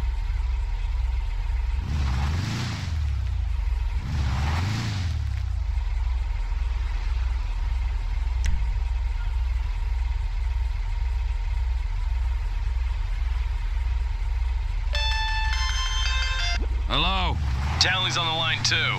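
An off-road buggy engine idles with a low, throbbing rumble.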